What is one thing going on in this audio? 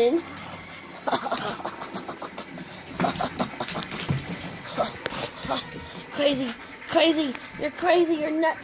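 A puppy growls and yips playfully close by.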